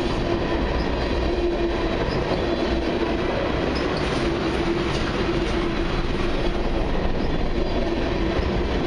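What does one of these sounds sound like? Freight car wheels squeal against the rails.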